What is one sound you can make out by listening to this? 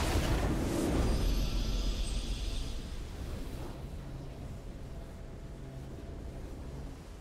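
A video game victory fanfare plays.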